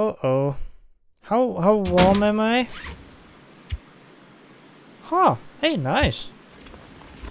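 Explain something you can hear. A man speaks expressively, close to a microphone.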